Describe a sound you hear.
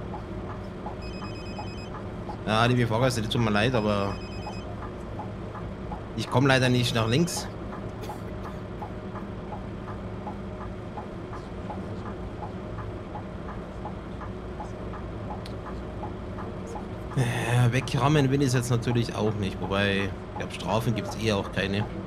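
Rain patters steadily on a bus.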